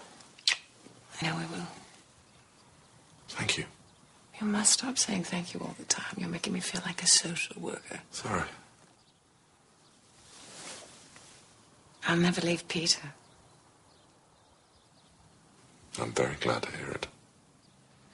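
A man speaks close by in a quiet, hesitant voice.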